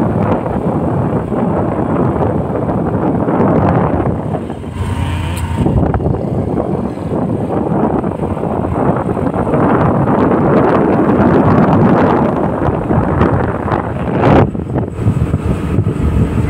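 Wind rushes loudly past a moving motorbike.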